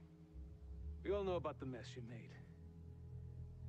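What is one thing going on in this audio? An elderly man speaks in a low, calm voice, close by.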